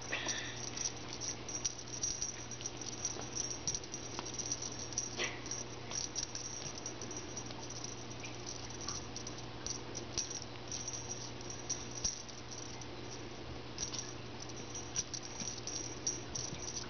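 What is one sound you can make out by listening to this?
Small paws patter and scuffle softly on carpet.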